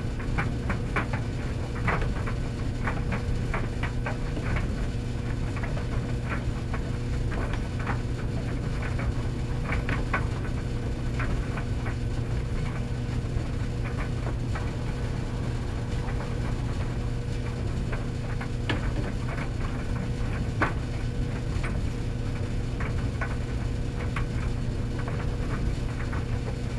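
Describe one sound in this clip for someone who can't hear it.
Commercial tumble dryers hum with a low, steady drone.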